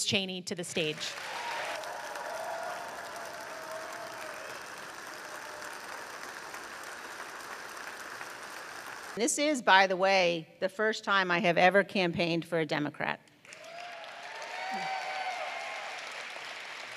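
An audience applauds and cheers.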